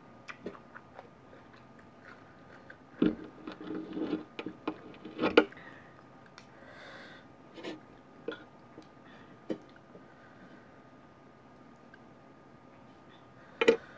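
Metal cutlery clinks and scrapes against a plate.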